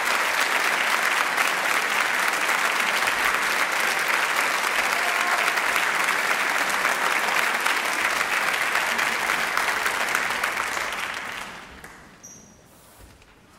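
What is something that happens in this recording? A large audience applauds loudly in a big hall, then the clapping dies away.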